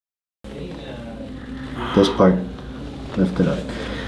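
A neck cracks with sharp pops.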